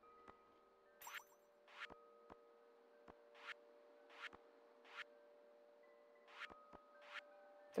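Menu clicks sound in short, sharp bursts.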